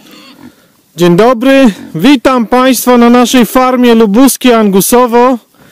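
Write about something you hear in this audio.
Pigs grunt softly.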